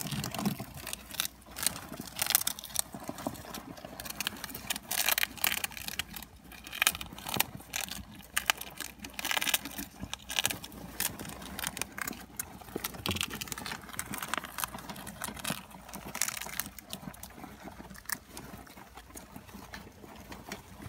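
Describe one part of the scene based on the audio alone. Hamsters scrabble and rustle in wood shavings.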